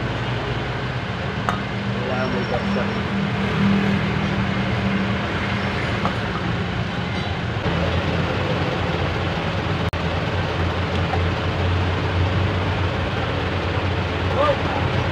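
Small metal parts click and scrape.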